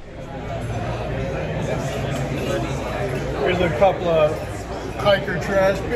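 An elderly man talks cheerfully close to the microphone.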